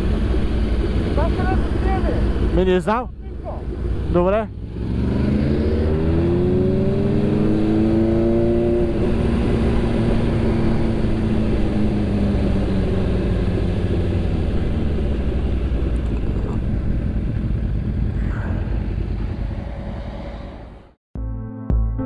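A motorcycle engine revs up and down close by.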